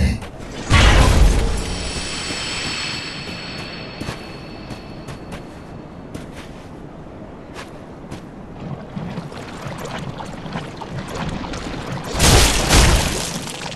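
Armoured footsteps clank and thud on the ground.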